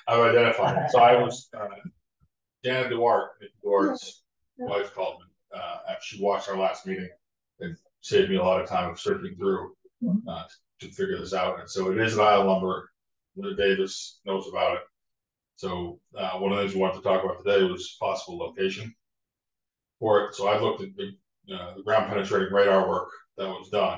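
A man speaks calmly, heard through a meeting microphone.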